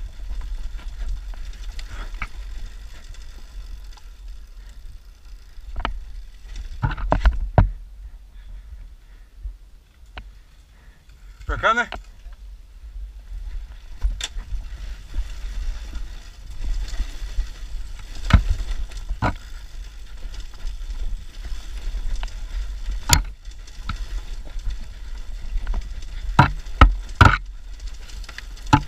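A dirt bike engine rumbles steadily up close.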